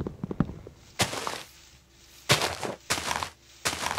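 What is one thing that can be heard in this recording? Leaves rustle and crunch in short, repeated bursts.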